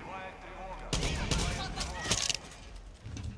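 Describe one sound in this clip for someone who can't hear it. Loud gunshots ring out in a close echoing space.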